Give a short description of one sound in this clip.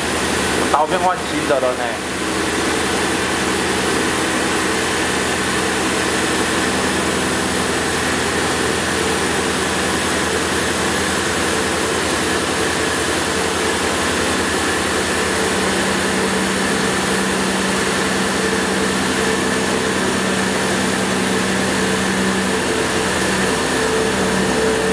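A milling machine hums and whines steadily as its cutter grinds into steel.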